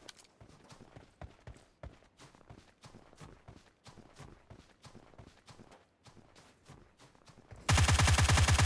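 Footsteps crunch quickly over snow.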